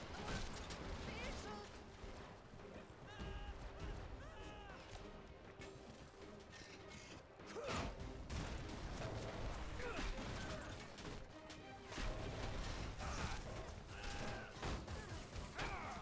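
Heavy boots thud quickly on gravelly ground as a soldier runs.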